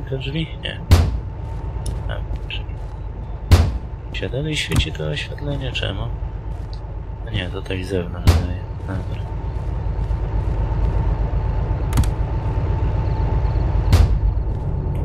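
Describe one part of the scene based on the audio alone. A metal cab door bangs shut.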